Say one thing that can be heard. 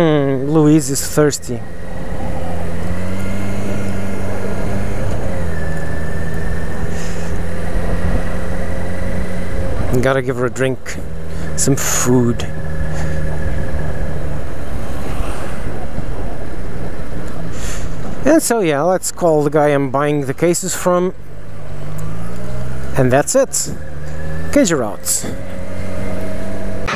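A motorcycle engine hums steadily and rises and falls in pitch.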